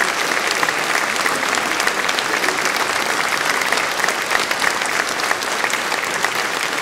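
A choir of men and women sings together in a large echoing hall.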